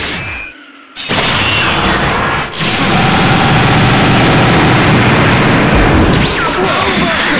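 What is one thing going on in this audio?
An energy blast charges with a loud roaring rush.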